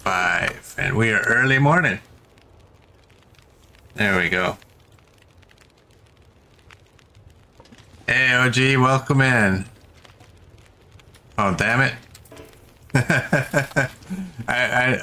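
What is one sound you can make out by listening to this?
A fire crackles softly inside a wood stove.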